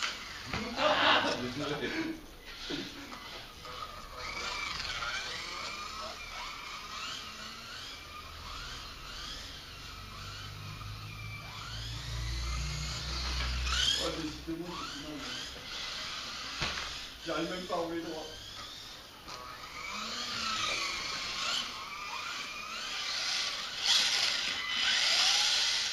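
High-pitched whining of small electric model cars racing past close by, rising and falling.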